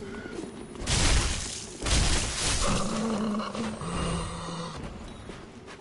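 A waterfall roars loudly.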